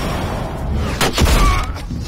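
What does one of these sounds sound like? A heavy blow lands with a thud.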